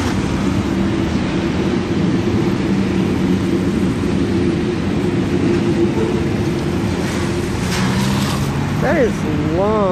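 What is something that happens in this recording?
Car tyres hiss on a wet road.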